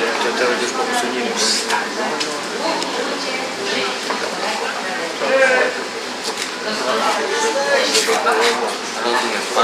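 A younger man answers calmly, close by.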